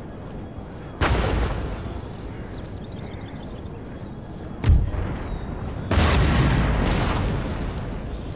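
Cannon fire booms across open ground.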